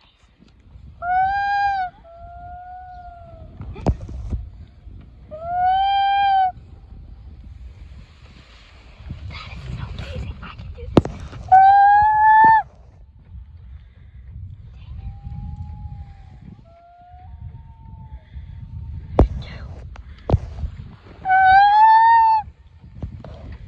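A young boy blows into his cupped hands, making loud hooting calls close by.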